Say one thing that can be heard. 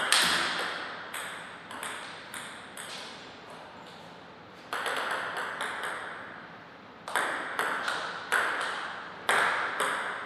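A table tennis ball clicks sharply back and forth off paddles and a table in an echoing hall.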